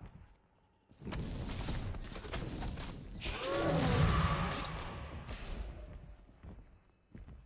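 Game sound effects whoosh and clash.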